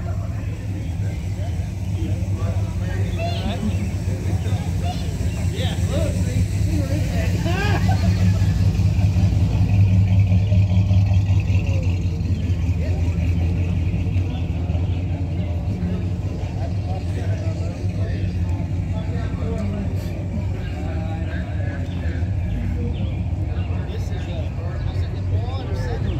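Several men talk casually nearby.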